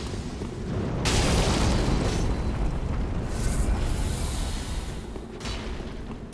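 A fire crackles and whooshes.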